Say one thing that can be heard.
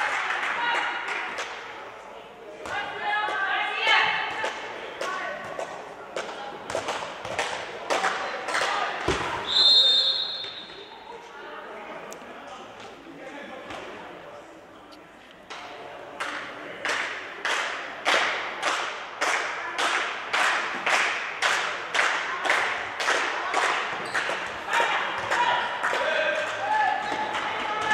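Young women shout to each other across an echoing hall.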